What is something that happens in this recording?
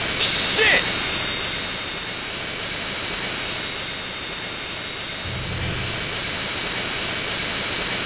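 A jet engine whines and roars steadily.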